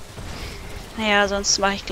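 A woman speaks close to a microphone.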